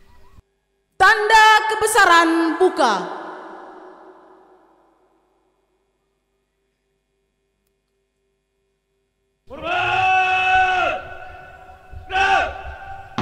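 A man speaks loudly through a loudspeaker outdoors, reading out.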